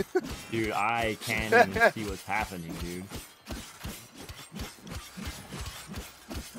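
Blades slash and strike in quick, sharp blows.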